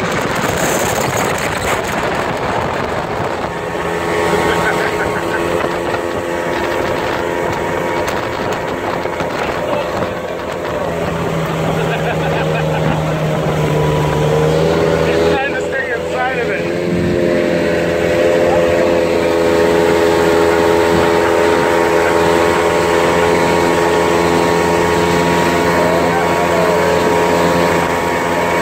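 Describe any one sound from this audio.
An outboard motor drones loudly up close.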